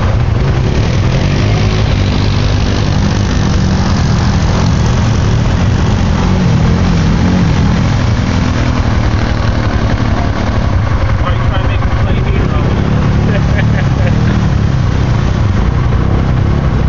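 A quad bike engine revs loudly through deep mud.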